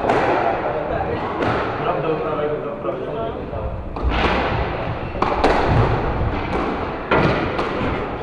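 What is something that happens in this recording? A squash ball smacks against the walls of an echoing court.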